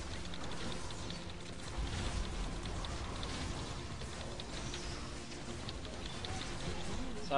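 Video game battle effects crackle and clash rapidly.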